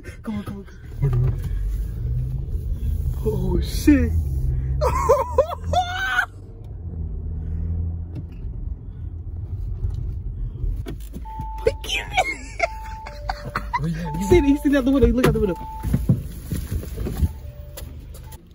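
A car engine hums low while driving.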